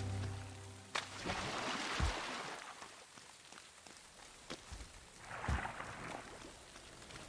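A blade swishes through the air in quick swings.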